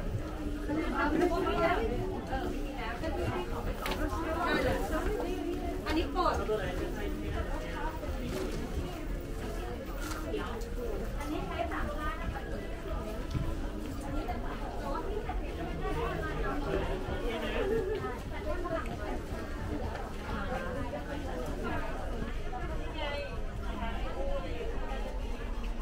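A crowd of shoppers chatters nearby in an echoing indoor hall.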